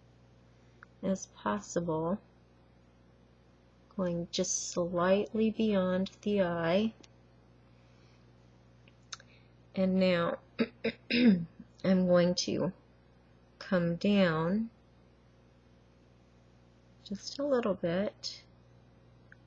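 A middle-aged woman talks calmly and close by, pausing often.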